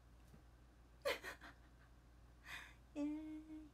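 A young woman laughs brightly.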